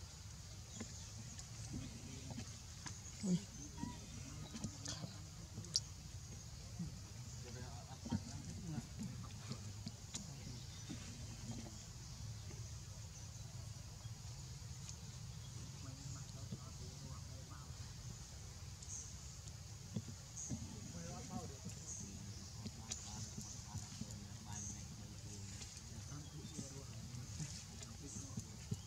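Leaves rustle as a small monkey scrambles through low plants.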